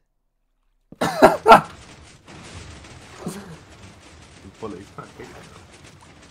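Water gurgles and splashes around a swimmer.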